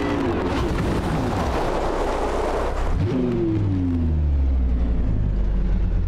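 Tyres skid and crunch over loose gravel.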